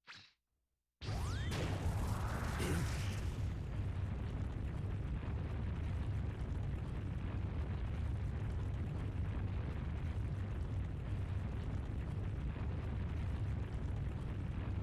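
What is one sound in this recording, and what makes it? An energy blast bursts with a loud whoosh, then roars steadily.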